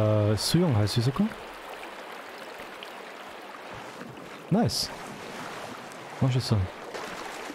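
Water rushes and splashes steadily.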